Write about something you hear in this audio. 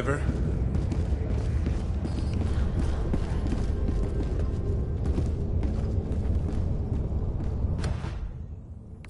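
Heavy armored footsteps thud on a metal floor.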